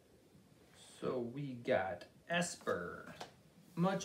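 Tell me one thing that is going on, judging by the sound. Trading cards rustle and slap as they are handled.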